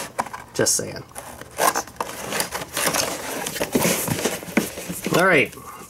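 Cardboard rustles and scrapes as a box is opened by hand.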